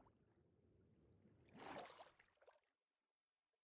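Water splashes as a swimmer surfaces.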